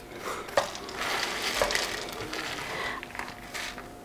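Dry seeds rustle and scatter across a metal plate.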